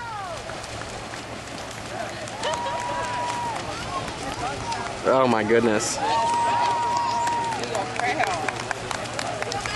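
A group of swimmers splashes and thrashes through open water.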